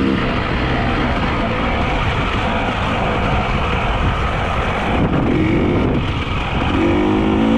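Wind rushes loudly past outdoors.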